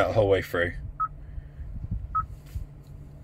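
A car touchscreen gives short beeps as it is tapped.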